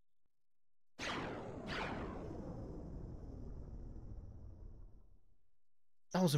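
A beam of light streaks down from the sky with a rushing roar that slowly fades.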